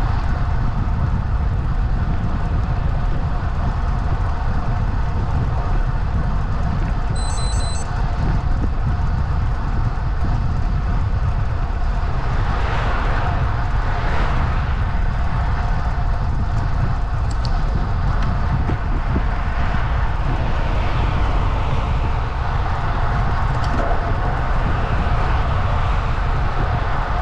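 Wind buffets the microphone steadily throughout.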